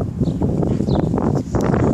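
A small dog pants close by.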